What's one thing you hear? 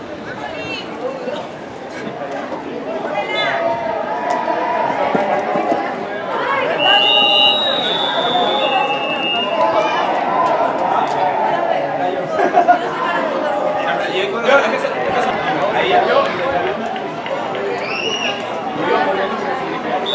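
Young players shout and call out across an open field outdoors.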